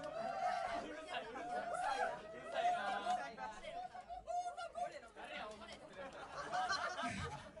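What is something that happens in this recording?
A crowd of young people sings and shouts loudly nearby.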